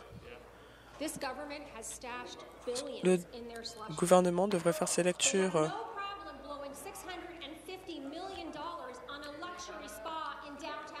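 A woman speaks forcefully into a microphone.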